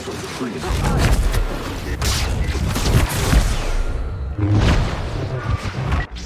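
Lightsabers clash and crackle in a duel.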